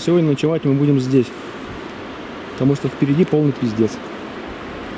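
A man speaks loudly outdoors, close by.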